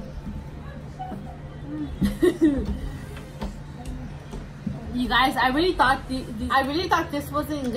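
A second young woman talks and laughs up close.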